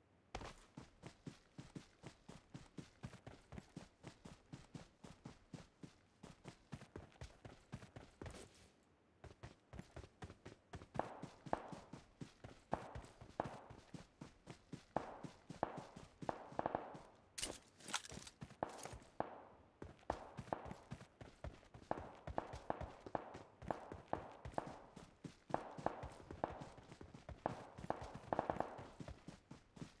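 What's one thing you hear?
Running footsteps thud quickly and steadily on dirt and grass.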